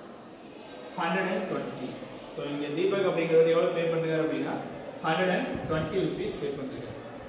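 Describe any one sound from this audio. A young man speaks calmly, explaining.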